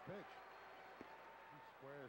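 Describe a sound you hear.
A bat knocks a baseball with a sharp crack.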